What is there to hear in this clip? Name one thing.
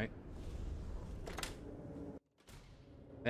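A metal door opens.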